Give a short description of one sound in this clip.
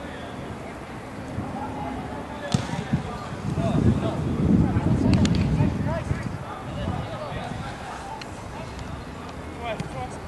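Young men shout and call out across an open pitch.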